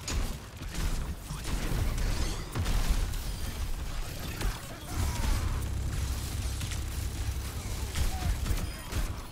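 A heavy weapon fires in rapid booming blasts.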